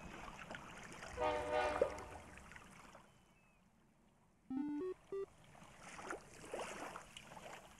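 A cartoon steam train whistles.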